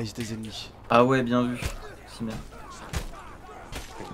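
Fists thump against a body in a fight.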